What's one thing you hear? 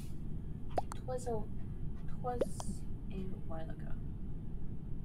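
A young woman speaks quietly into a microphone.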